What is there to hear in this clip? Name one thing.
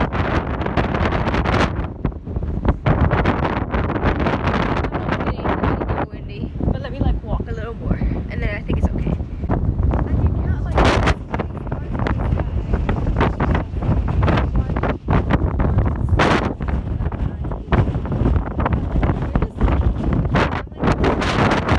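Strong wind buffets the microphone with a loud, rumbling roar.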